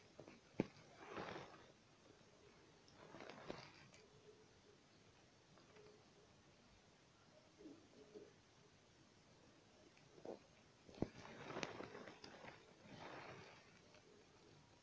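Thread rustles softly as it is pulled through fabric.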